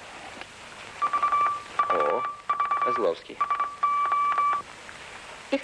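Short beeps sound through headphones.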